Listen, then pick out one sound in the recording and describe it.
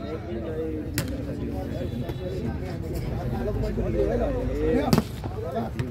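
A ball is struck with a sharp slap.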